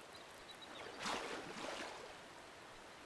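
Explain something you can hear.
A fishing lure lands in water with a light splash.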